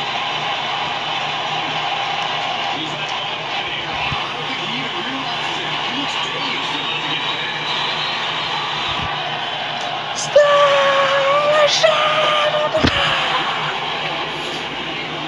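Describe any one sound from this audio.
A crowd cheers steadily through a television speaker.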